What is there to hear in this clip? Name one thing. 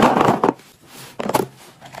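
A plastic lid clicks onto a box.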